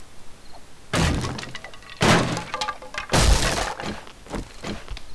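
A blade strikes wooden boards with dull knocks.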